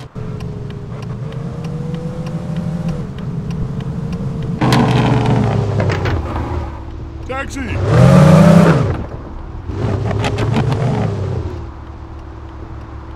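A car engine hums steadily, then revs up and down.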